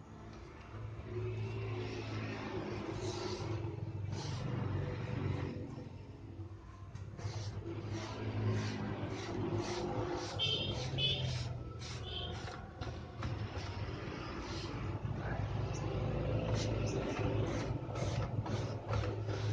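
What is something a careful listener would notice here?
A paintbrush swishes and scrapes against wood.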